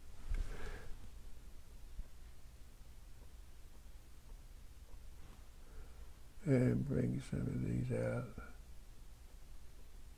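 A paintbrush dabs and strokes softly on canvas.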